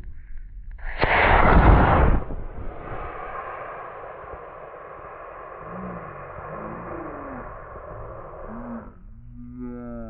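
A model rocket motor ignites with a sudden loud roar, then hisses and fades as the rocket climbs away.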